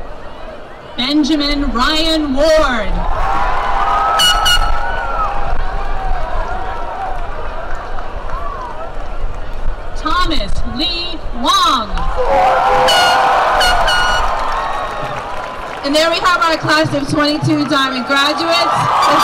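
A woman reads out names over a loudspeaker outdoors.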